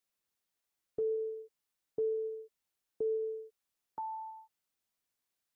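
A computer game's countdown timer beeps once per second, ending on a higher tone.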